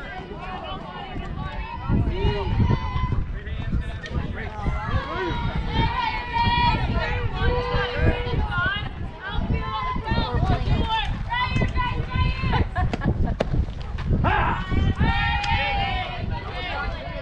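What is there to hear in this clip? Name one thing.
Young girls shout and cheer loudly outdoors.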